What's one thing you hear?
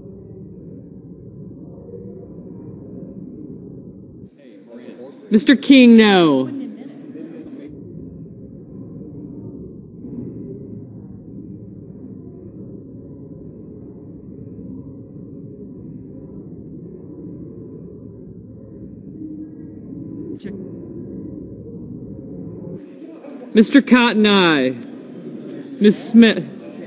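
A crowd of men and women murmurs and chats quietly in a large echoing hall.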